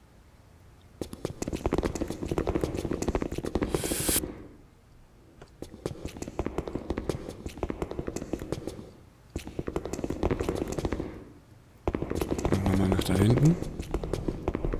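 Footsteps tap on a hard floor in an echoing corridor.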